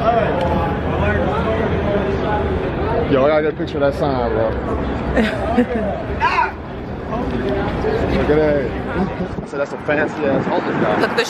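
Adults talk close by, several voices overlapping outdoors.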